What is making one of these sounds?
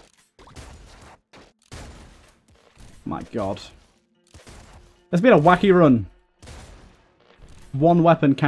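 Small electronic gunshots fire in quick bursts.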